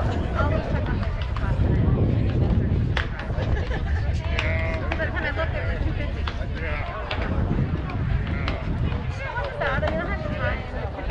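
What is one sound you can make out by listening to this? Young girls call out and chatter from across a field.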